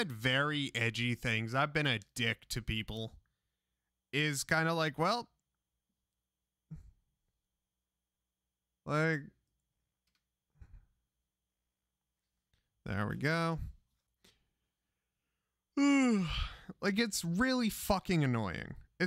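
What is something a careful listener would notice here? A man talks animatedly into a close microphone, in bursts with pauses.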